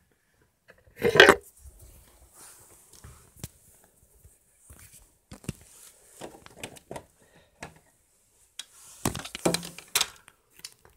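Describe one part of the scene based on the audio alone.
Plastic toy bricks knock and scrape close by.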